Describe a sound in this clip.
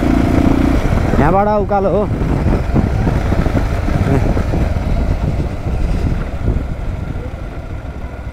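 A motorcycle engine hums as the motorcycle cruises along a paved road.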